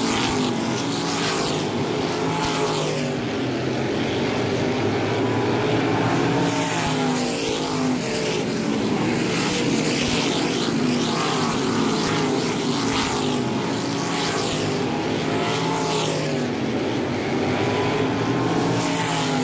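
Engine pitch rises and falls as cars pass by.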